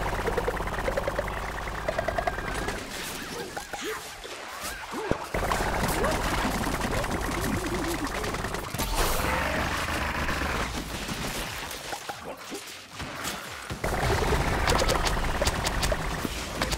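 Rapid blaster shots fire in bursts.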